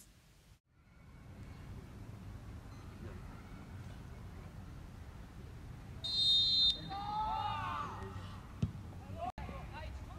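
Outdoors, players call out faintly across a wide field.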